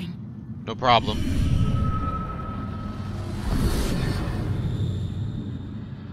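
A deep rushing whoosh swells and then fades.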